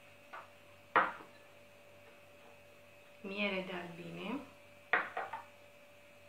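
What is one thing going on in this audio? Glass bowls clink on a tabletop.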